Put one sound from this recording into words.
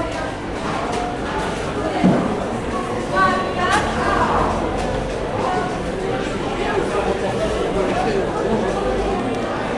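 Hands rummage through scraps of meat in a plastic bin.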